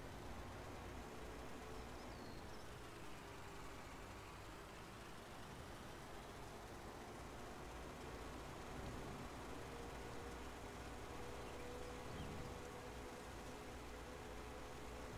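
A tractor engine hums steadily as a tractor drives across a field.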